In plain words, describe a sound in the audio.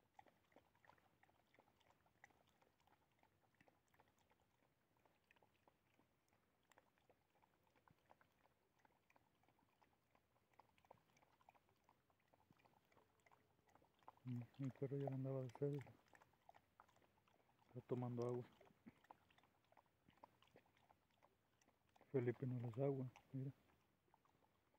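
A dog licks and chews food close by.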